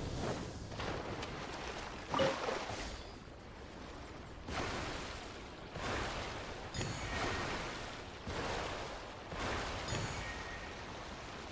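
Water splashes and rushes around a small boat moving quickly.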